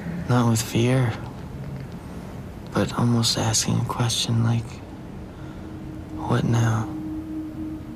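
A man speaks softly and closely.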